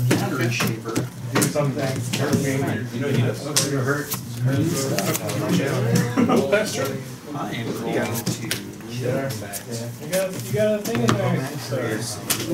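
Playing cards slide and tap onto a cloth mat.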